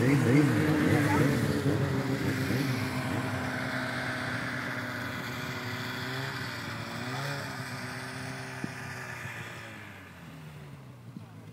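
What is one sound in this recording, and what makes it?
Snowmobile engines hum nearby.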